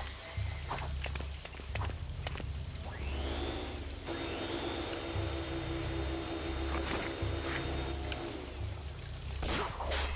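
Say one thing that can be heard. Video game music plays with a steady, thumping low beat.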